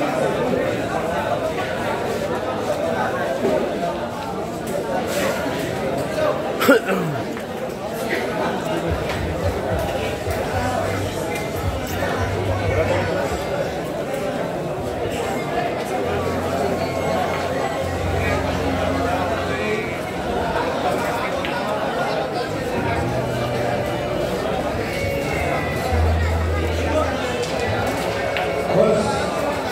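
A crowd of young men chatters and murmurs nearby.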